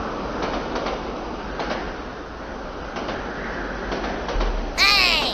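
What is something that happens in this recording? A train rumbles and clatters along the tracks.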